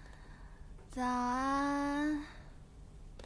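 A young woman calls out a long, sing-song greeting.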